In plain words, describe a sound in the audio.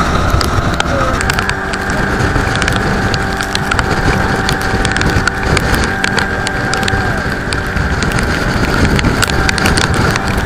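A boat's engine drones steadily.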